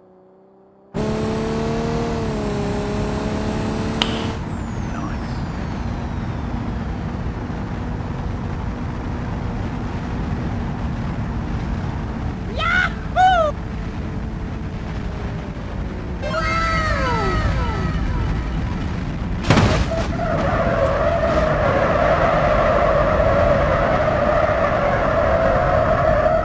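A car engine hums steadily as a car drives along a ramp.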